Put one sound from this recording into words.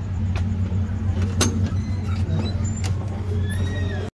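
A glass door clicks open.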